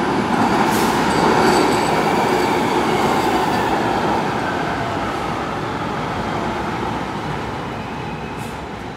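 A train rumbles and screeches along the rails, slowing as it pulls into an echoing underground station.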